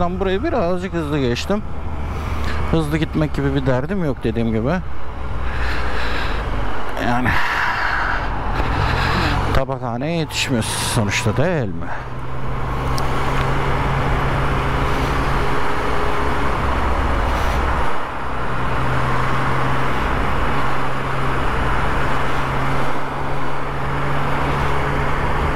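A motorcycle engine hums steadily as the motorcycle rides along.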